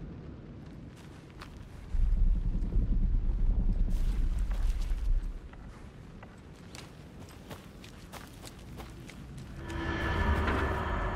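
Footsteps rustle and crunch through leafy undergrowth.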